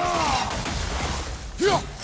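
Ice crackles and shatters in a sudden burst.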